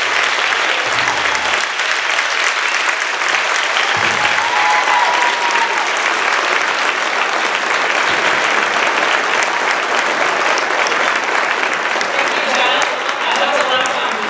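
A large crowd chatters and murmurs in a big echoing hall.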